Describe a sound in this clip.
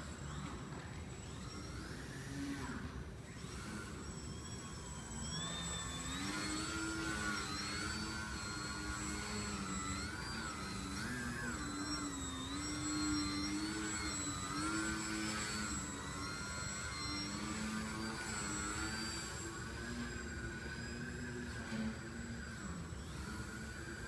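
A small model plane's electric motor whines, rising and falling in pitch as it flies in a large echoing hall.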